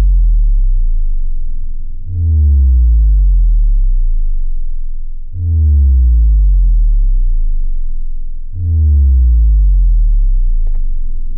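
A cartoon bird lets out a deep, slowly falling drone every few seconds.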